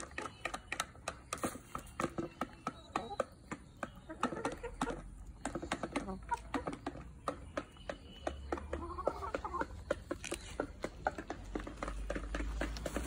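Chickens peck rapidly at the ground nearby.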